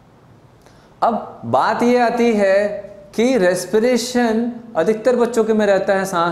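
A young man speaks clearly and steadily, close by.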